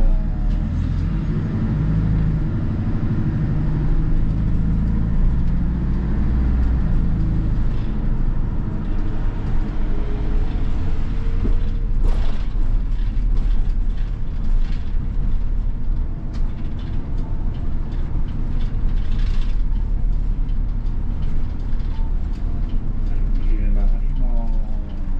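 Rattles and creaks come from inside the bus as it rolls over the road.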